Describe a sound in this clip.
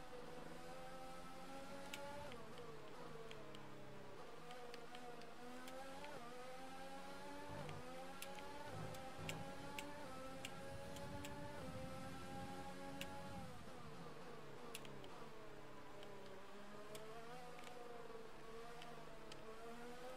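A racing car engine screams, rising and falling in pitch as the car speeds up and brakes through corners.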